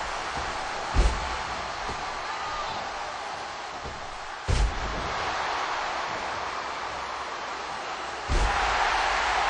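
A body slams down hard on a wrestling ring mat with a loud thud.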